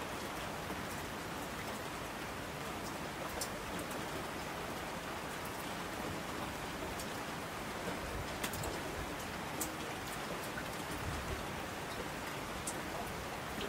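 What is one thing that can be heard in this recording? Rushing streams roar down a slope.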